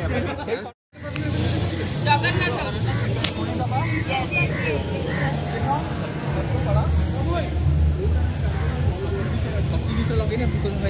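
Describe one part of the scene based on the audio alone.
A crowd of men and women chatter outdoors.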